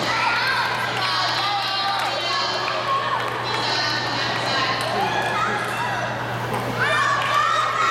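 A table tennis ball clicks off paddles and the table in a large echoing hall.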